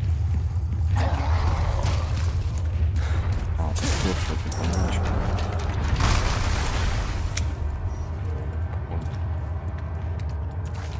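Footsteps splash through shallow water.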